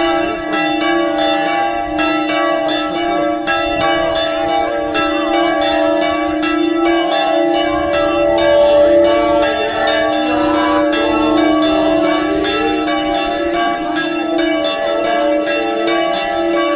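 A crowd of men and women sings together outdoors.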